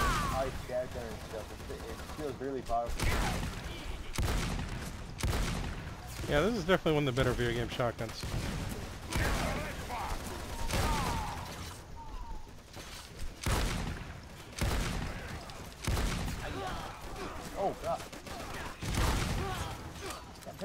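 Gunfire bursts out in short, loud volleys.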